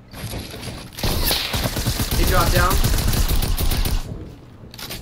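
Wooden walls crack and splinter as they break apart.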